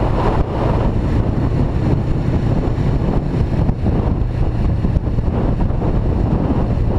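A motorcycle engine hums steadily while riding along.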